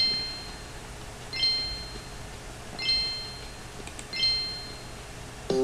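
Short electronic beeps sound at an even pace.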